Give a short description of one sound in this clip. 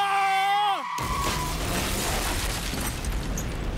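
A fire bursts with a loud blast.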